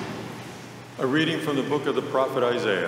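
A man reads out through a microphone in a large echoing hall.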